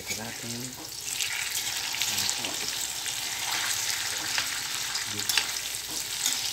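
Food sizzles and crackles in hot oil.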